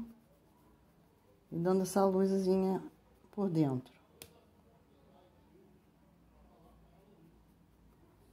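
A paintbrush dabs softly on cloth.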